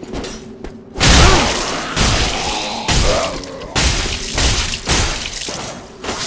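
Heavy weapons clash and thud in a fight.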